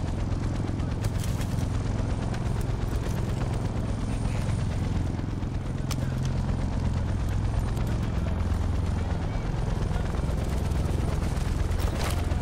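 Footsteps crunch on dirt.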